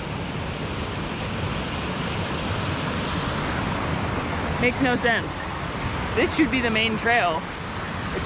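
A mountain stream rushes and splashes steadily over rocks.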